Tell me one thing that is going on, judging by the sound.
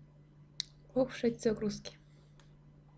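A young woman speaks briefly and close to a microphone.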